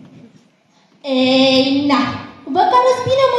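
A young girl sings into a microphone.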